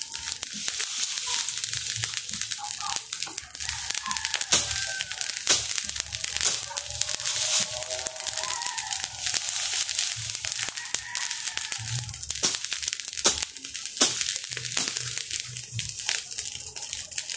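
A fire crackles and pops in dry brush.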